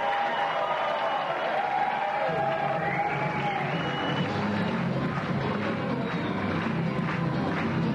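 A dancer's hard shoes tap and stamp on a wooden stage.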